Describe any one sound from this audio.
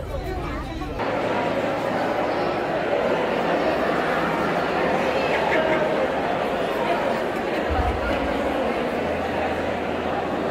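A large crowd murmurs in a large echoing hall.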